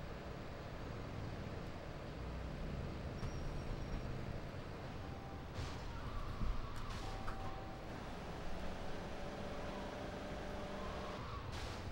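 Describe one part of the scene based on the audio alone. A car engine roars steadily as the car speeds along.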